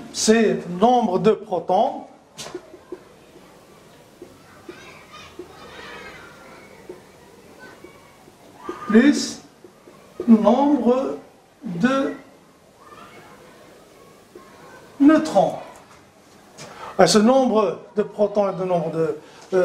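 A middle-aged man speaks calmly and clearly, as if teaching, close to a microphone.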